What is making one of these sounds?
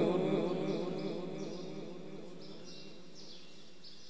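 A man chants a long, wavering note through a microphone, which slowly fades away in an echoing hall.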